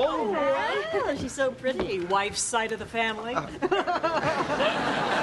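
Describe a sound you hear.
A young woman speaks with lively expression nearby.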